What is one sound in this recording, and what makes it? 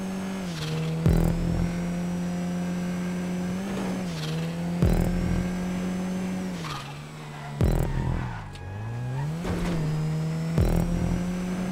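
Car tyres thump over bumps.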